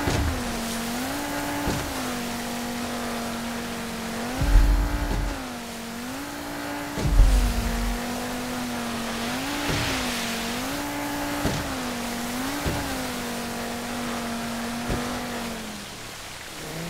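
A motorboat engine drones, rising and falling in pitch as it speeds up and slows.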